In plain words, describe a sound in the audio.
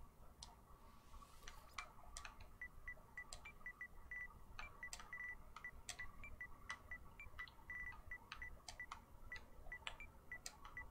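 Short electronic menu beeps and clicks sound rapidly, one after another.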